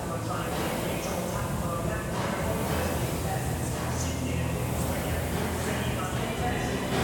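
A rowing machine's fan whooshes with each stroke.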